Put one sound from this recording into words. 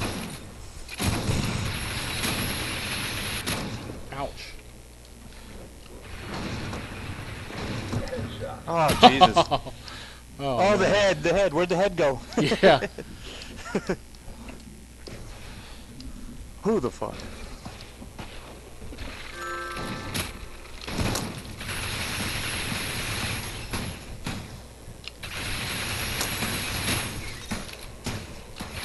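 A futuristic gun fires with a steady buzzing whoosh.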